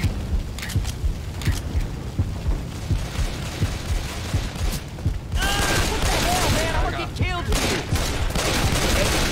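Pistols fire rapid, repeated gunshots.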